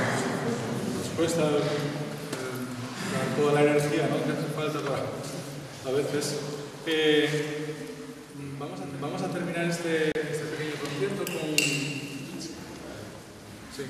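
A man speaks calmly to the audience in an echoing hall.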